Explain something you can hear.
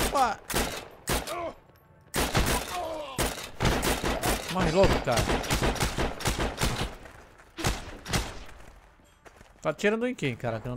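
Rifle shots crack loudly in rapid bursts nearby.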